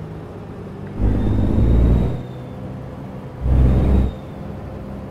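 A truck engine roars up briefly twice.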